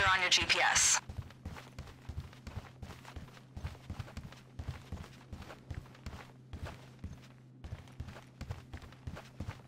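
Footsteps run quickly across a hard floor.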